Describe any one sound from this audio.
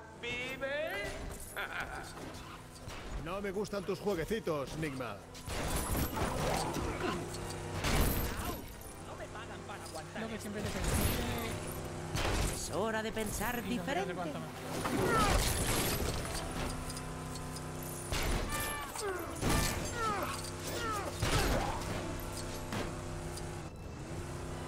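Crashes and bangs sound from a game.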